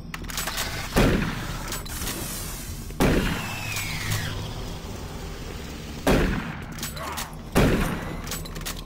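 A shotgun fires several loud booms.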